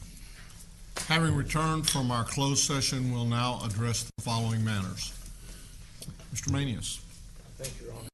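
A man speaks calmly through a microphone in a large room.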